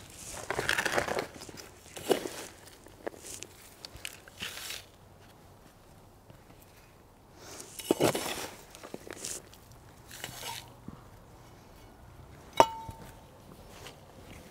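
A trowel scrapes and scoops gravel in short rattling bursts.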